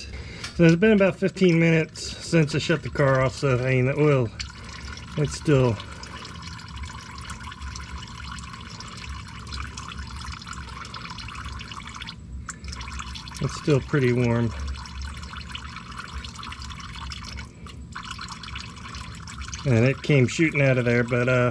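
A thin stream of oil trickles and drips into a pan.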